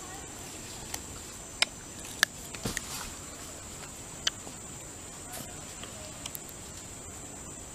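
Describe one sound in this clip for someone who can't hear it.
A young orangutan chews and crunches food close by.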